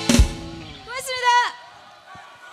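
Young women call out together in high voices through microphones.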